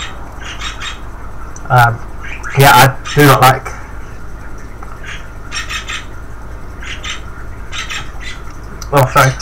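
A candy wrapper crinkles and tears as fingers open it.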